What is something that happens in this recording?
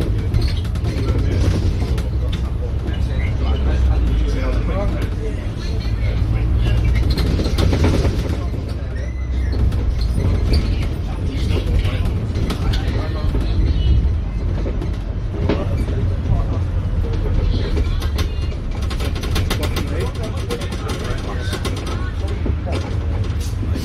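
A bus engine rumbles low and steady as the bus drives along.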